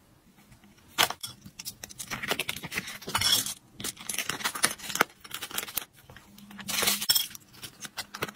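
Plastic crinkles and rustles as hands unwrap small items.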